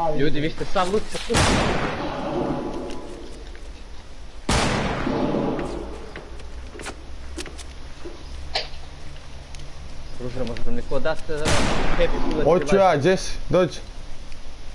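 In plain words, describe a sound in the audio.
Wooden panels thump into place quickly as walls and ramps are built.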